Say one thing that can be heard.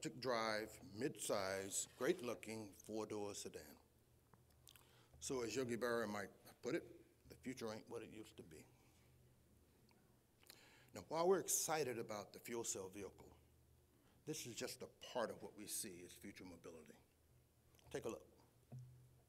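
A man speaks calmly into a microphone, heard through a loudspeaker.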